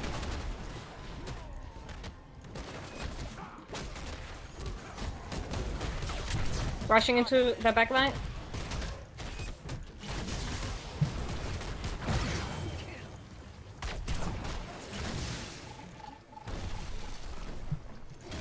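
Video game spells and fighting crackle and boom.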